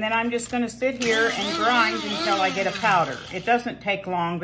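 An electric coffee grinder whirs loudly.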